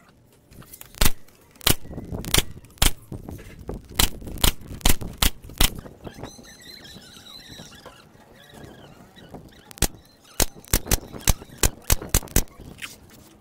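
A nail gun fires sharp bangs into wood in quick bursts.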